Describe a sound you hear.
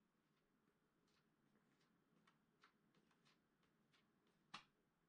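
A tool clicks and taps against a skateboard.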